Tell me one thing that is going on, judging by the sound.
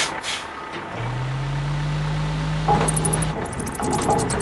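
A crane winch whirs as it lowers a crate.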